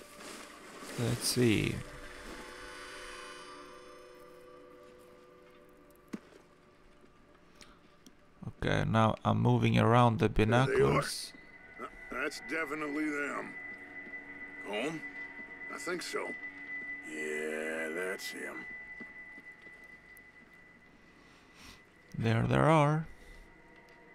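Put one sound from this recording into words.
A man speaks in a low, gruff voice, in short bursts.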